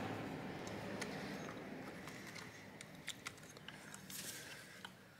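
Plastic parts click and snap as a casing is pried apart.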